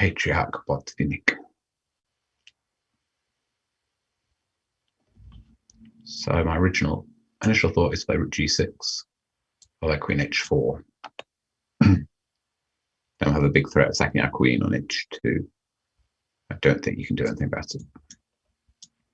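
A man speaks calmly and thoughtfully into a close microphone, with pauses.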